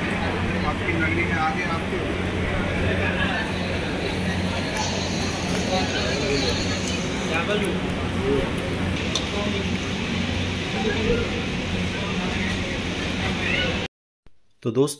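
Many men chat and talk over each other in a busy, echoing hall.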